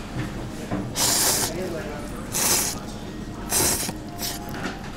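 Someone slurps noodles loudly.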